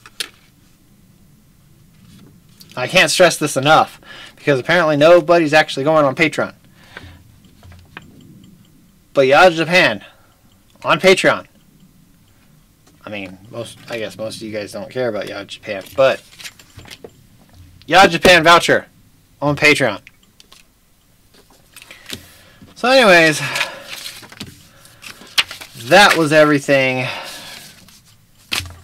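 Paper rustles as a young man handles a packet.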